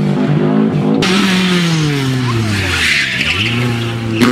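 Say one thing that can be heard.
A small car engine buzzes loudly as it accelerates past.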